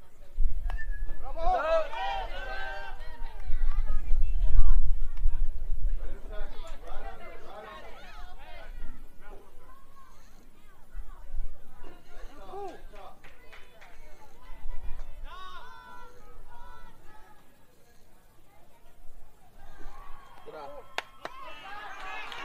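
Young players shout and cheer outdoors.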